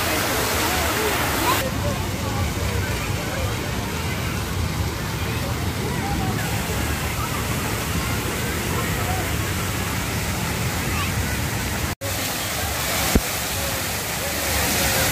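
Fountains splash and spray steadily outdoors.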